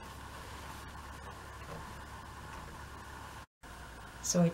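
A hand rubs softly over fabric.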